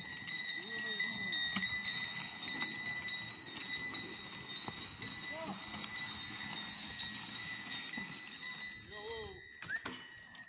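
A man calls out to oxen outdoors.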